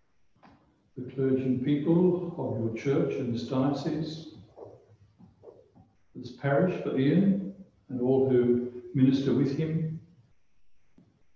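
An elderly man speaks calmly and slowly into a microphone, heard over an online call.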